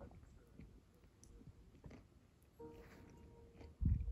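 A ceramic mug is set down on a hard surface with a light knock.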